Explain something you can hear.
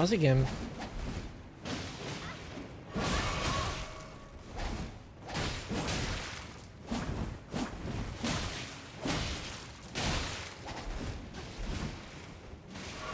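Swords clash and slash in a fast fight.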